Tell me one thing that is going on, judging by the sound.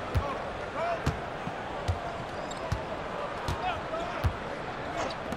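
A basketball bounces steadily on a hardwood court.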